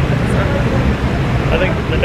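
A middle-aged man laughs close by.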